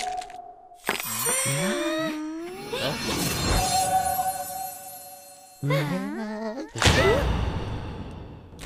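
Several young cartoon characters exclaim excitedly together.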